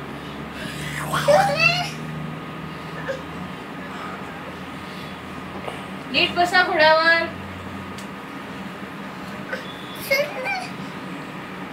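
A small child babbles and squeals.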